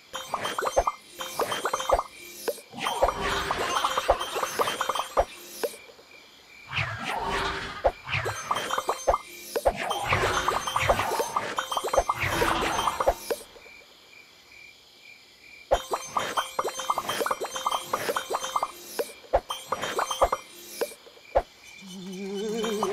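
Short bright game chimes ring out in quick bursts.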